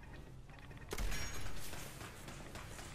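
A laser beam zaps loudly.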